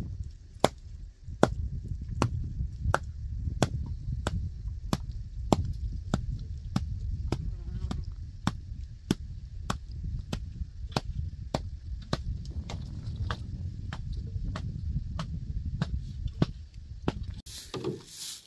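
A hanging skin bag of milk sloshes and thumps in a steady rhythm.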